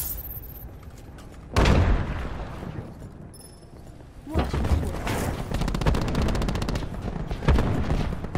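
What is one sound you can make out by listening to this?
Footsteps thud and clang inside a narrow metal duct.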